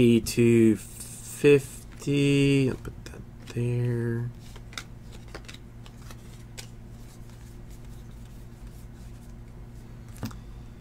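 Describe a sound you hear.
Trading cards flick and slide against each other.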